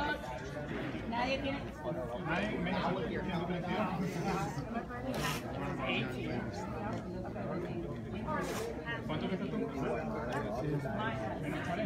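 A crowd of people chatters nearby in a large echoing hall.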